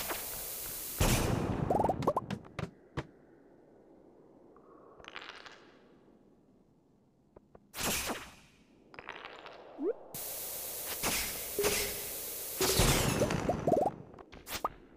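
Rocks clatter and break apart.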